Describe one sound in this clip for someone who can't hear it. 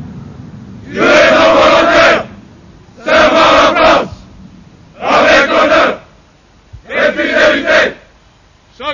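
A large group of men chant loudly in unison, in short bursts, outdoors.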